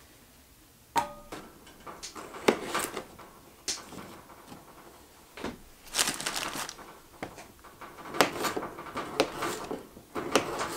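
A knife chops through potatoes on a cutting board.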